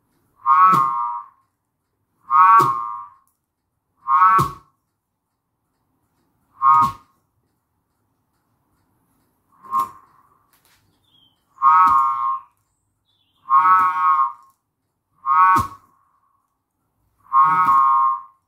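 A spinning button whirligig whistles in short bursts each time its string is pulled taut.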